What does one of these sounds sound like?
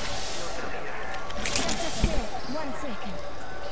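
A syringe hisses as it is used.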